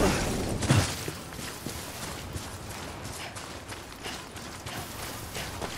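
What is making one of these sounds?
Footsteps swish through grass.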